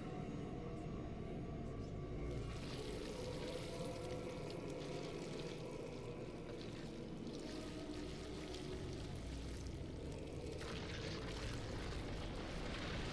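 A deep, booming rumble rolls on.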